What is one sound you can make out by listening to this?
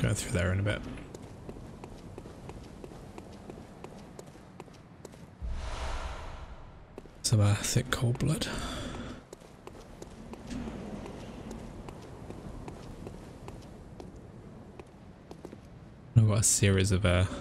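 A man talks into a close microphone in short bursts.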